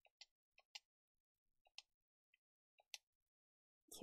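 Short electronic blips sound as a menu cursor moves.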